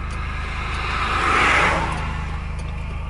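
An oncoming car whooshes past.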